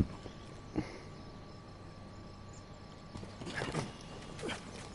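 Footsteps thud on a metal grate.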